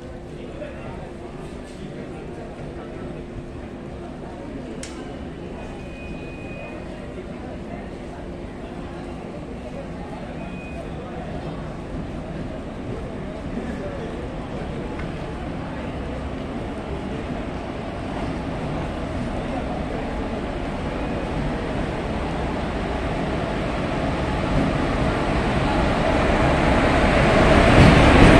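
A train approaches and rumbles louder as it comes closer.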